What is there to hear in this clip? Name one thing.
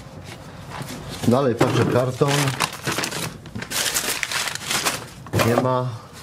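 A plastic sheet rustles and crinkles.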